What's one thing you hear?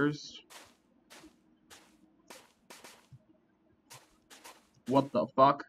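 Footsteps tread lightly over stone and grass.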